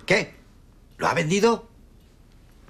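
A middle-aged man speaks sternly close by.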